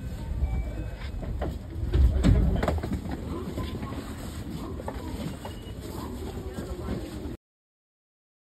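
A train car rumbles and rattles along the tracks.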